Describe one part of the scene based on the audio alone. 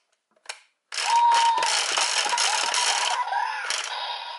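A toy device plays electronic sound effects and music.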